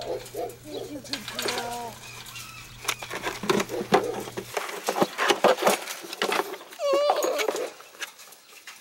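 Puppies scratch and rattle a wire fence.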